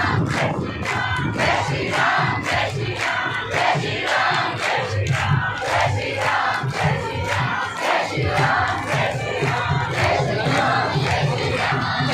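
A large crowd claps hands in rhythm outdoors.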